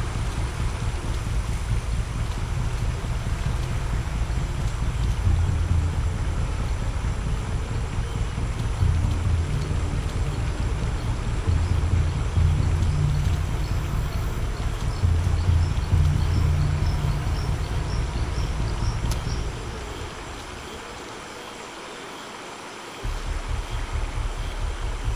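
Footsteps crunch and rustle through dense undergrowth.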